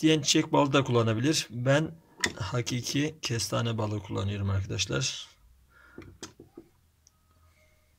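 A spoon scrapes inside a glass jar.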